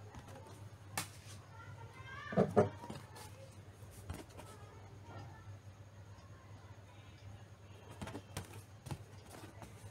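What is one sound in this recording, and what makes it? A vinyl record is handled with soft knocks and rustles.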